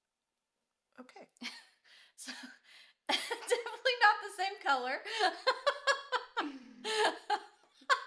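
A woman speaks close up, calmly and expressively.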